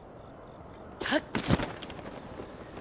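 A glider canopy snaps open with a sharp whoosh.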